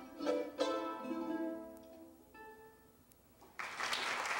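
A mandolin plays a few plucked, ringing notes.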